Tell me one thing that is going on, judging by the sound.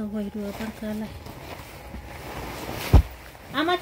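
Fabric rustles as hands handle cloth.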